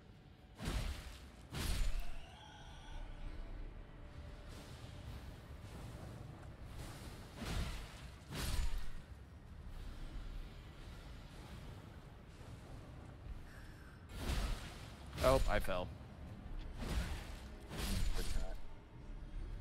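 Heavy sword blows land with sharp clashing hits.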